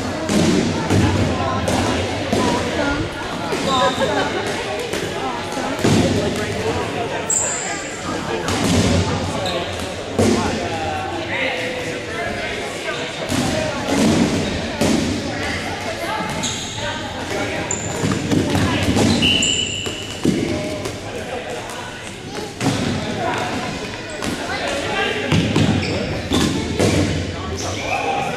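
Balls bounce and thud on a wooden gym floor.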